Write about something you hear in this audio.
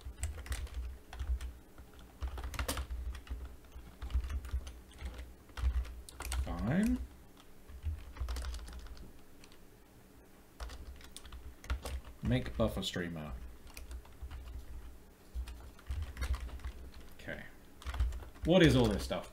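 Keyboard keys clatter in quick taps.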